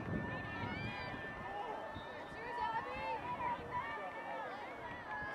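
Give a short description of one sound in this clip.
A crowd of spectators shouts and cheers outdoors at a distance.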